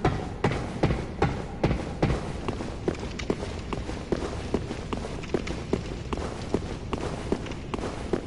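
Armoured footsteps clank steadily and quickly on stone.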